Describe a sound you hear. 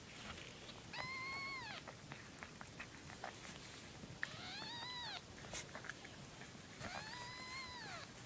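A cat meows loudly in long drawn-out cries.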